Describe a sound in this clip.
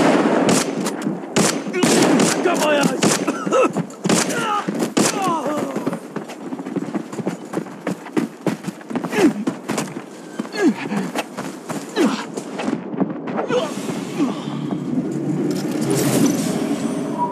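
Gunshots ring out rapidly and repeatedly.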